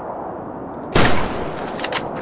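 A rifle shot cracks.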